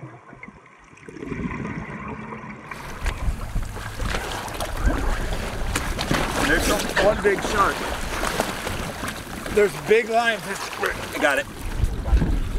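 Waves slosh and splash against a swimmer.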